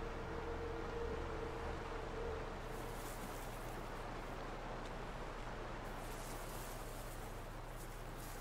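Footsteps patter softly on a path.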